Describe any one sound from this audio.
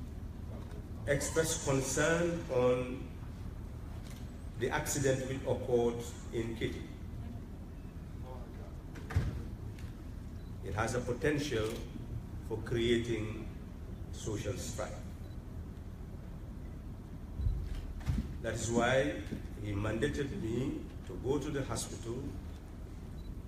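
An elderly man speaks slowly and calmly into a microphone, with pauses.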